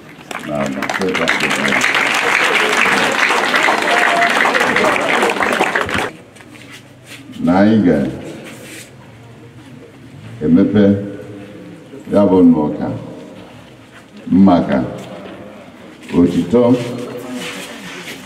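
An older man chants through a loudspeaker in slow, drawn-out phrases.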